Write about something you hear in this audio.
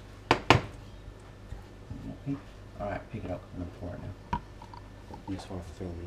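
A metal pan knocks and clatters on a stovetop.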